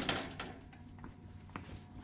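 Metal light fixtures clink and rattle.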